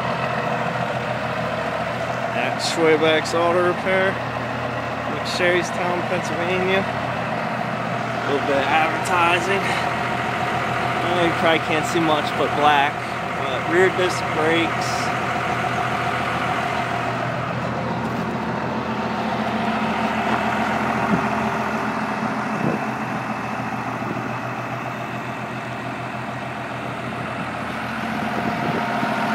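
A large truck engine idles with a steady low rumble.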